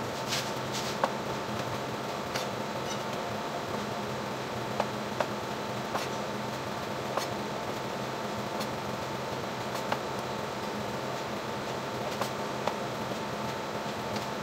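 A knife chops on a plastic cutting board with sharp knocks.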